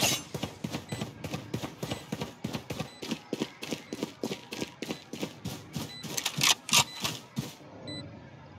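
Footsteps patter quickly and evenly on hard ground.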